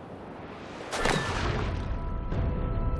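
A body hits the ground with a heavy thud.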